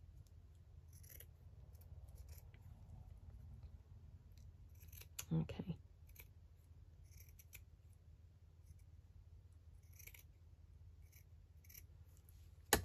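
Scissors snip through lace with soft, quick clicks.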